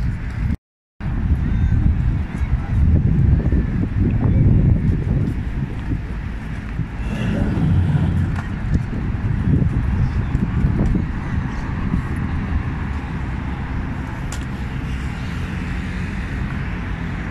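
Wind rumbles and gusts outdoors.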